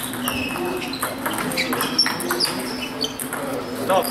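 A table tennis ball bounces on a hard floor.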